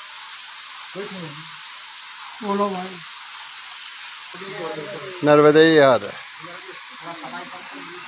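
An elderly man speaks loudly in short bursts, close by.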